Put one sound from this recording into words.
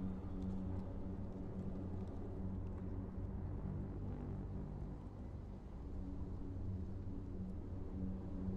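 Footsteps scuff slowly on pavement.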